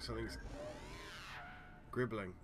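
A soft electronic tone sweeps upward as a menu opens.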